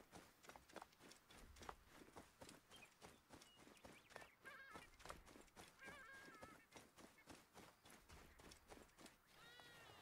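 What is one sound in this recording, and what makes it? Quick footsteps run over grass and dry ground.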